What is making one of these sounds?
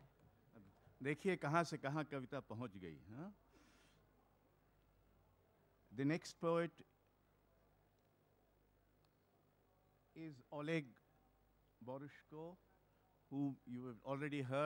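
An elderly man speaks slowly into a microphone, heard through loudspeakers with pauses between phrases.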